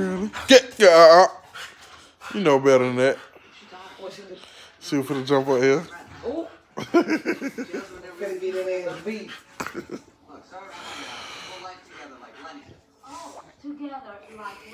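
A dog howls in long, wavering cries close by.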